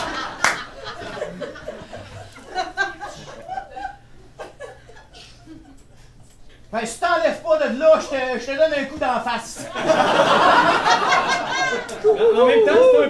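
Several men talk and shout with animation.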